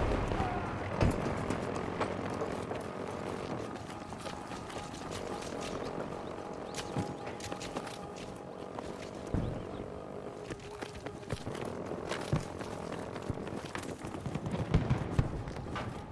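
Gunshots and blasts pop in the distance.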